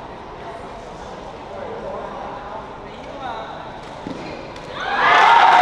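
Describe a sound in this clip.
A shuttlecock is struck sharply with a racket.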